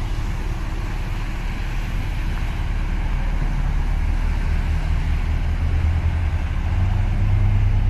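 Water splashes in a boat's wake.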